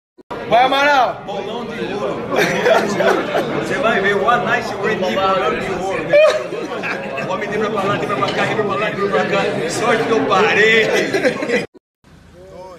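A young man sings loudly and with animation close by.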